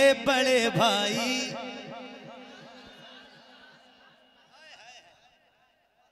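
A man chants loudly through a microphone and loudspeakers, his voice echoing and slowly fading.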